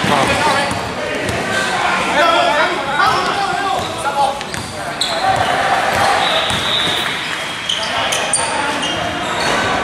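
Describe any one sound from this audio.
Young players and spectators shout and call out in a large echoing gym.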